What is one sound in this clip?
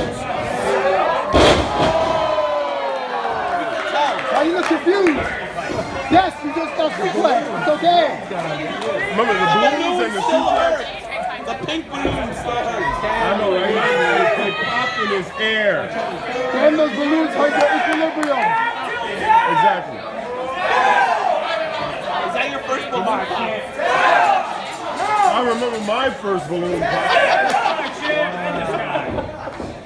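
An indoor crowd chatters and shouts throughout.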